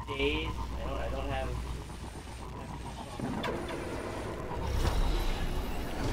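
A hover bike engine hums and whooshes.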